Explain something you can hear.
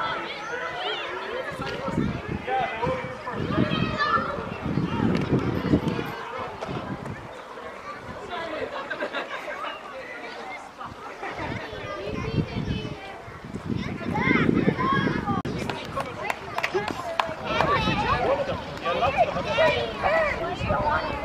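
Young children shout and chatter excitedly outdoors.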